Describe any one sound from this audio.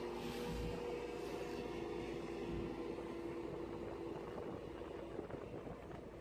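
A motorboat engine drones steadily and then fades away.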